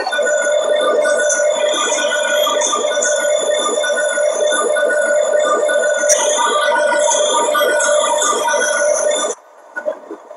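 A train engine rumbles steadily inside a locomotive cab.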